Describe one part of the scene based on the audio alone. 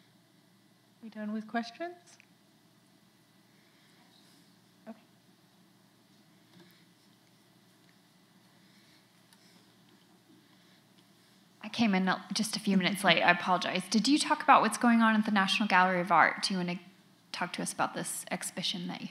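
A woman speaks calmly into a microphone in a large hall.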